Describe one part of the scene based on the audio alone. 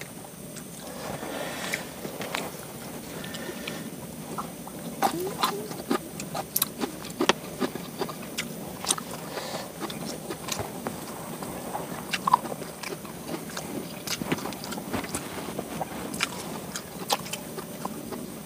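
Hands squish rice and food with soft wet clicks.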